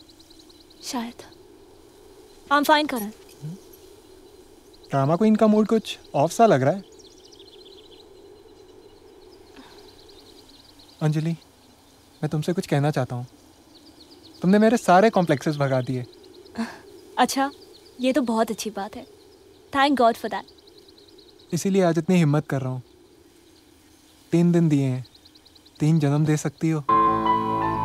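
A young man speaks softly and calmly nearby.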